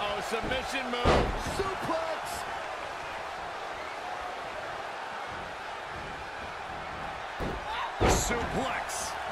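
Bodies slam heavily onto a wrestling ring mat with loud thuds.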